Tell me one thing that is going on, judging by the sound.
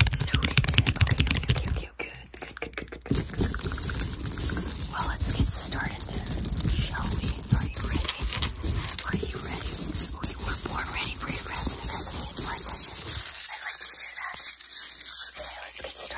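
Hands rub and brush close to a microphone.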